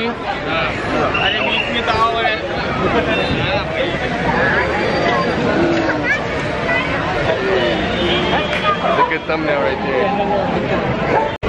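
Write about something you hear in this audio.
A crowd of people chatter and shout excitedly all around.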